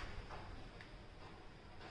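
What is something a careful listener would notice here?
Leaves rustle softly as a hand brushes a trailing plant.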